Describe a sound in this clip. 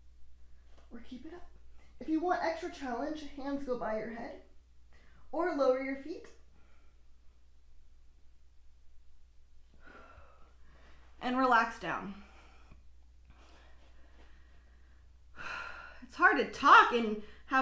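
A young woman speaks calmly and instructively, close by.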